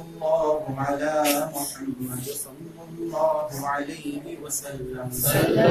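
A young man chants a melodic recitation through a microphone.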